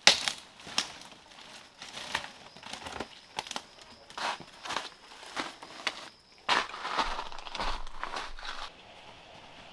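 A log scrapes and knocks against branches as it is dragged.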